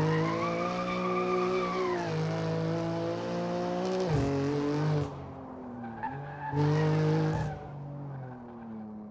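A car engine revs loudly, rising and falling as the gears shift.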